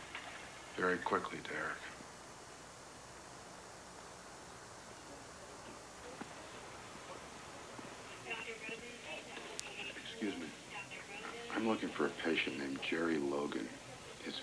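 A middle-aged man speaks in a tense, serious voice close by.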